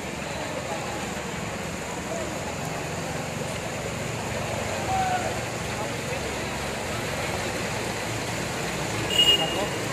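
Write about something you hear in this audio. People wade and splash through shallow floodwater.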